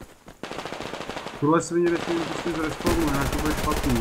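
A gun fires a short burst of shots close by.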